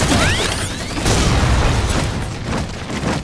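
A loud energy blast bursts and crackles.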